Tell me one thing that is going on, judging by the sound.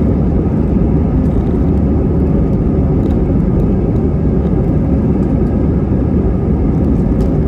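Airplane wheels rumble and thump along a runway.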